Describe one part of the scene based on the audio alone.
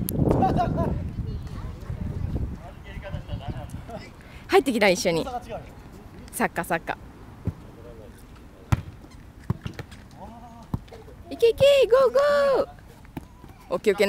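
A soccer ball thumps as it is kicked back and forth.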